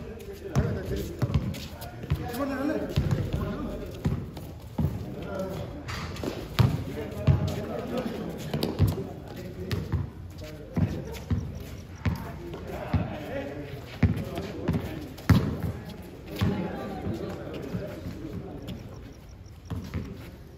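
Young men call out to each other during a game.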